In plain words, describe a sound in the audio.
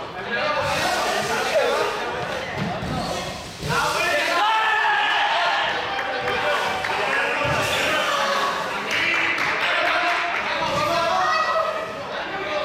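Sneakers thud and squeak as children run across a hard floor in an echoing hall.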